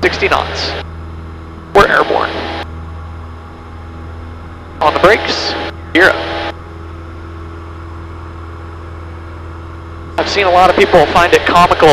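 A small plane's engine drones steadily.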